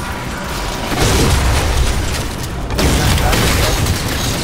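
An explosion bursts with a loud crackle of sparks.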